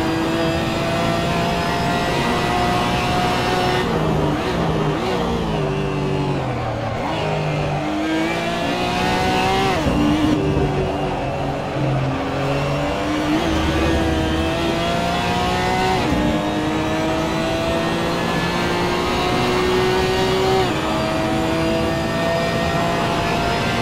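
A racing car engine roars, rising in pitch and dropping sharply with each gear change.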